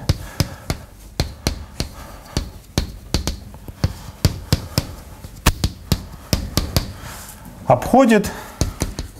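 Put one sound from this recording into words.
Chalk taps and scrapes rapidly on a blackboard.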